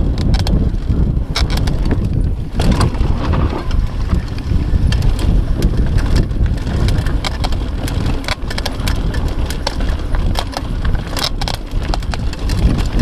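Wind rumbles loudly against a microphone outdoors.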